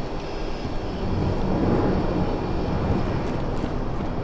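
Heavy sliding doors rumble open.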